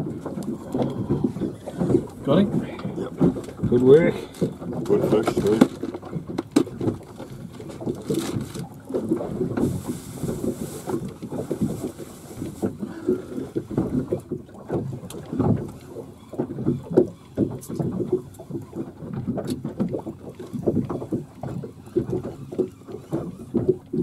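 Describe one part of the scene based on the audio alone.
A middle-aged man talks casually nearby.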